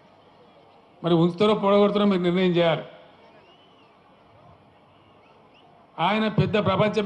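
An elderly man speaks forcefully into a microphone over loudspeakers, with pauses.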